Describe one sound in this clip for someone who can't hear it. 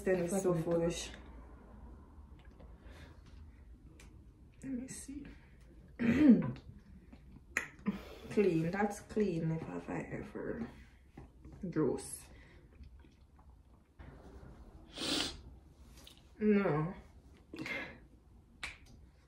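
A second young woman talks and answers close by.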